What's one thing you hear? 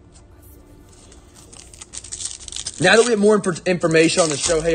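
A foil card pack crinkles as it is handled.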